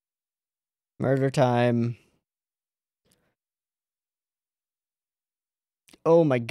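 A young man speaks close into a microphone, in a playful, drawn-out voice.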